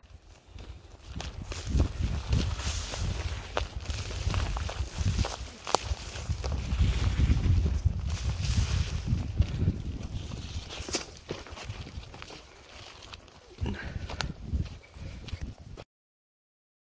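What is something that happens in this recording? Footsteps crunch on a sandy, gravelly trail.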